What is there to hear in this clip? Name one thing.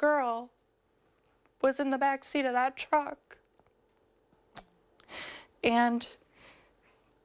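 A young woman speaks calmly and close to a microphone, pausing between phrases.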